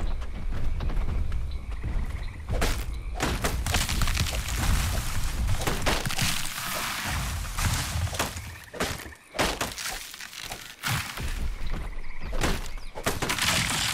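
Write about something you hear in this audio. Tall grass and leaves rustle as someone pushes through them.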